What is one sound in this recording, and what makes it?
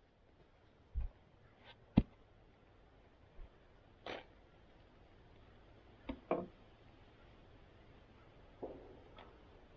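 Wooden logs knock together.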